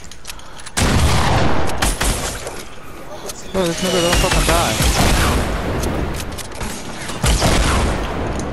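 Gunfire bursts loudly in quick shots.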